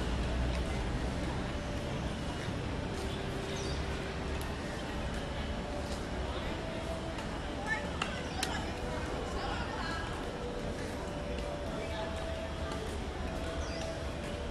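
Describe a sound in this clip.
Hands slap and brush against arms in quick exchanges.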